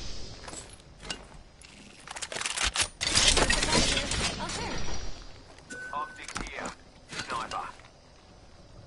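Short clicks and chimes sound as items are picked up.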